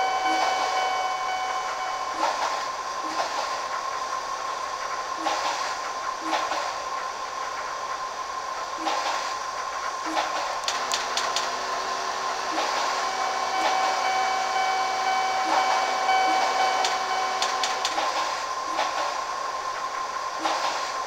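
A train's electric motor hums steadily.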